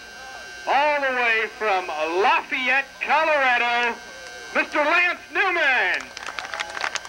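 A man announces loudly over a public address loudspeaker, echoing outdoors.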